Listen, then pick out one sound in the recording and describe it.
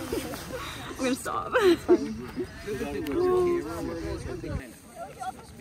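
Two young women chat and laugh close by.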